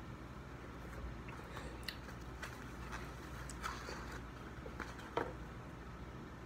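Paper wrapping rustles and crinkles.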